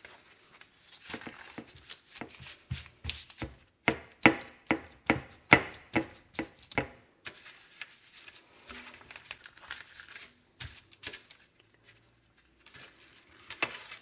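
Hands pat and press soft dough with quick soft thumps.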